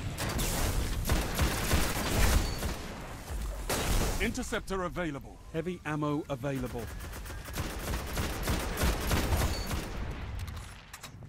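Gunfire blasts in rapid bursts.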